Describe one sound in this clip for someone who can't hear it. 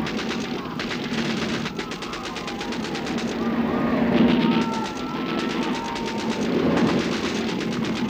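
A crowd of men shouts and cries out.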